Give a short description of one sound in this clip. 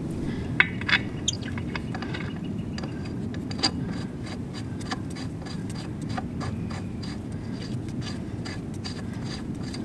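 Metal clicks and taps as a lug nut is turned by hand.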